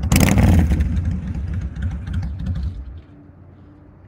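A motorcycle engine idles and then shuts off.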